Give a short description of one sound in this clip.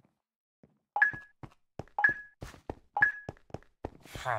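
A game countdown beeps three times.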